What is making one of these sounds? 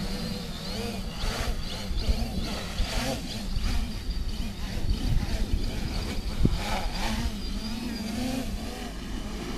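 A small drone buzzes nearby with a high whine, then fades away.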